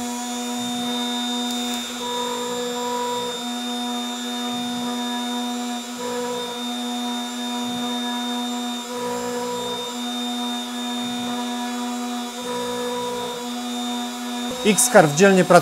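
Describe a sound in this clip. A machine spindle whines steadily while drilling.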